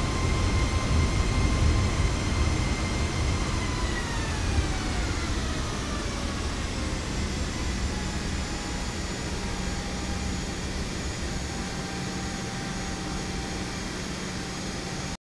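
Jet engines whine steadily, their pitch falling as they spool down.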